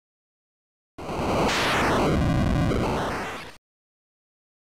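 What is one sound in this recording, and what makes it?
A retro video game plays a loud rushing burst of noise that sweeps down and fades.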